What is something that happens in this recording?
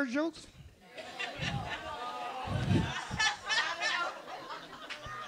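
An audience laughs and cheers in a large room.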